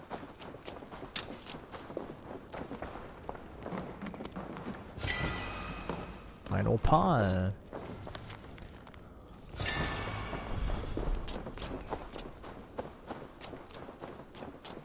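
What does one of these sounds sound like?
A young man talks into a close microphone.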